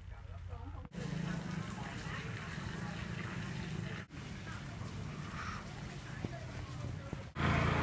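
A busy street murmurs outdoors.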